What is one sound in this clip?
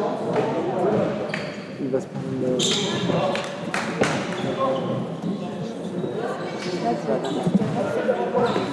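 Young men chatter nearby in an echoing sports hall.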